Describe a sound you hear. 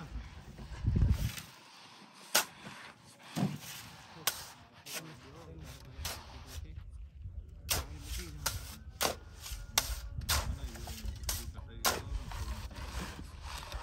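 A board scrapes and slaps against wet mud.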